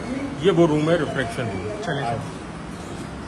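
A middle-aged man speaks close by with animation.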